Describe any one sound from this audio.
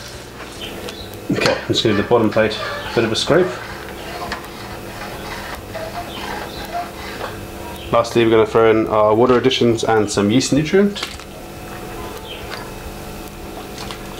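A paddle stirs liquid in a metal pot.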